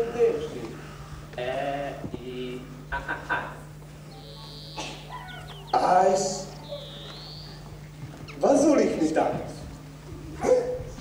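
A man speaks in a comic, put-on voice, close by.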